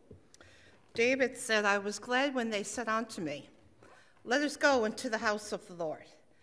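An older woman speaks loudly into a microphone.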